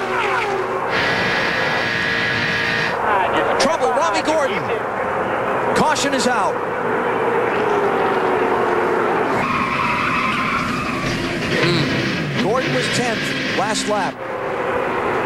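A race car engine drones loudly from close up.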